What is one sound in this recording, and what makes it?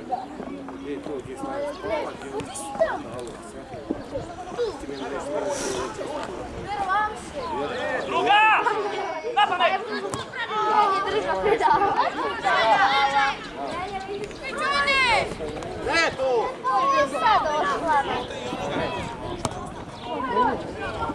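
Boys shout and call out to each other across an open field.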